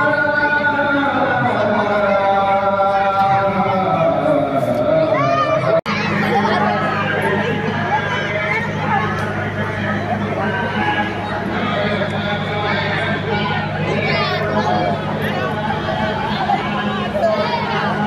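A crowd of children and adults chatter and call out nearby outdoors.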